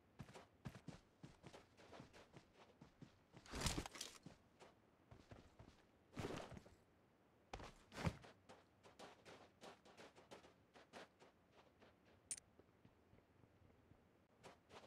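Footsteps crunch quickly on dry dirt.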